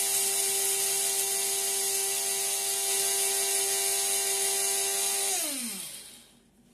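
An electric grinder whirs steadily, then winds down and stops.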